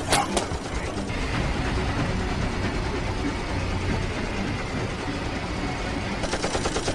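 A steam train chugs and rumbles along the tracks.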